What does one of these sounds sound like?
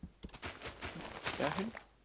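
Dirt crunches as blocks are dug out.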